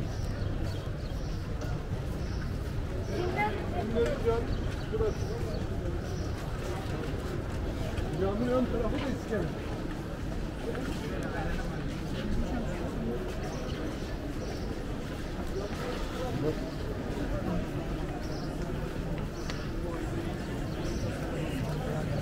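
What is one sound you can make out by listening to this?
A crowd murmurs and chatters outdoors on a busy street.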